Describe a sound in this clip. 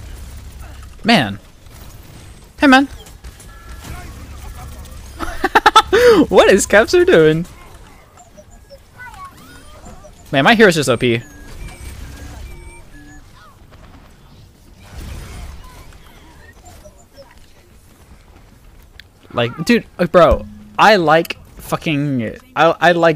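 A young man talks excitedly into a microphone.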